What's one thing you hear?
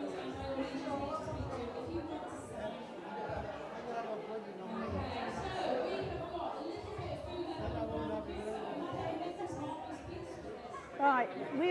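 Women and children chatter nearby in a busy room.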